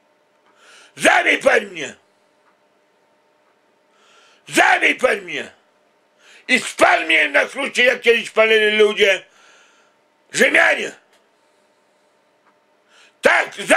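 A middle-aged man speaks close up in loud, drawn-out bursts, with animation and pauses between them.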